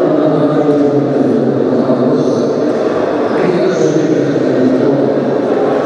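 A man talks steadily into a microphone.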